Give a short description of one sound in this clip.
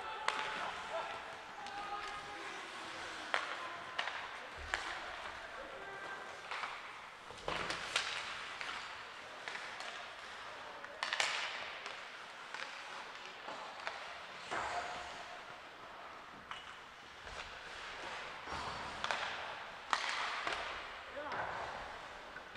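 Skate blades scrape and hiss across the ice in a large echoing rink.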